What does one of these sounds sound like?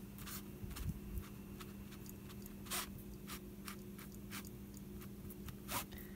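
A brush dabs and strokes on a board.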